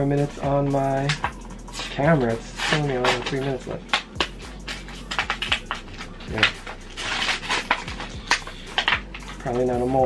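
A plastic card wrapper crinkles and tears as hands open it.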